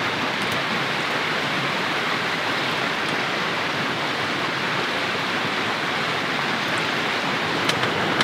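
A wood fire crackles softly in a stove.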